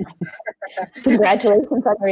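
An elderly woman laughs over an online call.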